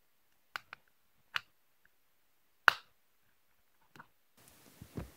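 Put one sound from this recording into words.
A plastic pry tool clicks sharply as it snaps open a phone's casing.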